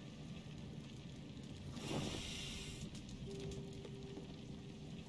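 A fire roars steadily in a furnace.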